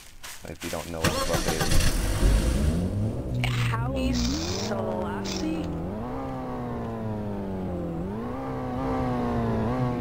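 A car engine starts and revs up through the gears.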